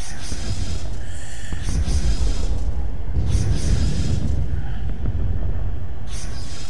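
A deep engine rumble drones steadily.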